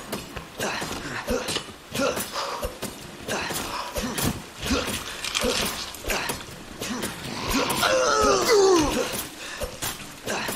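A creature snarls and groans during a struggle.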